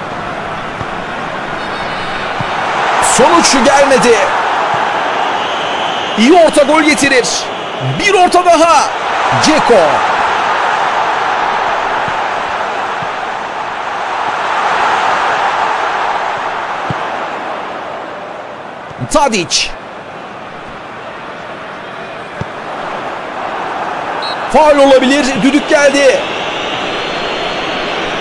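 A large stadium crowd roars and cheers steadily, swelling and fading.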